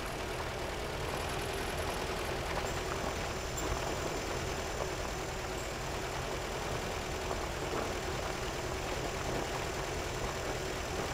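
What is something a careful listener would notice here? A vehicle engine rumbles steadily as it drives slowly over rough ground.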